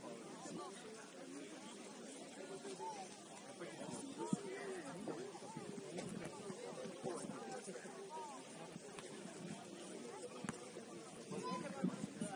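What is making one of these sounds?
Players shout and call to each other across an open field outdoors.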